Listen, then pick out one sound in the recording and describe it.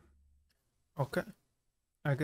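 A young man speaks briefly and casually into a close microphone.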